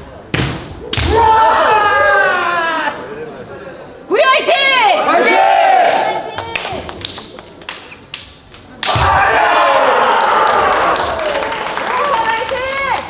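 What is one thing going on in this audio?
Kendo fighters shout loud, drawn-out cries in a large echoing hall.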